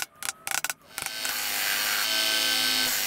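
A belt sander hums and grinds against wood.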